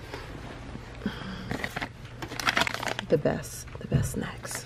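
A plastic snack bag crinkles.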